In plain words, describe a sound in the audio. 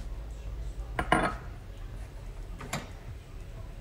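A metal saucepan clinks and scrapes on a stove grate.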